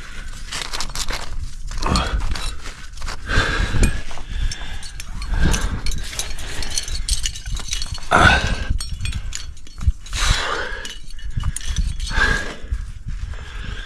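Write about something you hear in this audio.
Climbing shoes scrape against rock.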